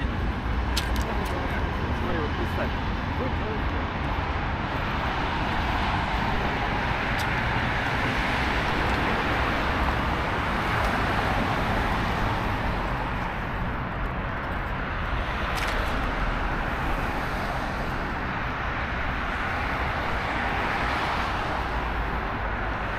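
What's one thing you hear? Traffic drives past on a city street with a steady hum.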